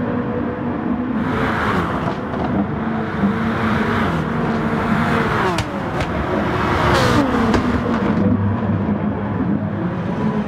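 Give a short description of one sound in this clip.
Racing car engines roar at high revs.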